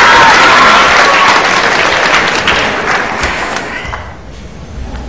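A large audience cheers and shouts loudly.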